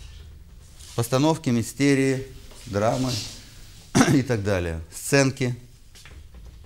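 A middle-aged man lectures with animation through a microphone in an echoing room.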